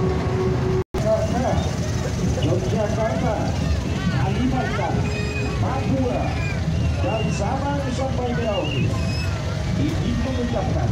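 Engines of small open vehicles rumble as they crawl past.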